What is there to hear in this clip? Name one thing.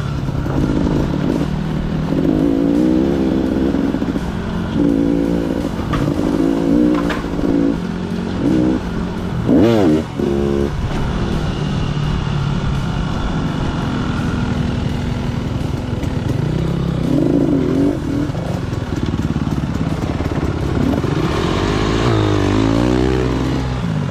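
A dirt bike engine hums and revs up close.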